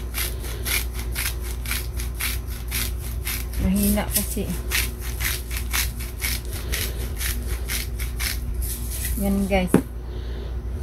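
A shaker rattles in quick, steady shakes.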